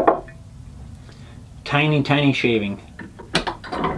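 A metal hand plane clatters as it is set down on a wooden bench.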